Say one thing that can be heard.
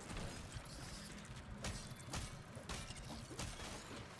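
A sword swishes and strikes with sharp hits.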